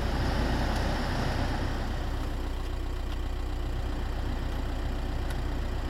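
A finger clicks the climate control buttons in a car.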